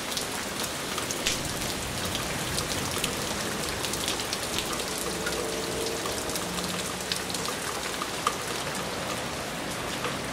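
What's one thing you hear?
Heavy rain pours and patters outdoors.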